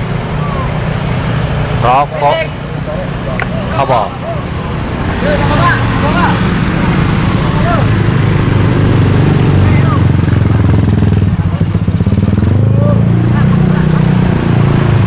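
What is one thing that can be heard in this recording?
Motorcycle engines hum and rumble as the motorcycles pass close by.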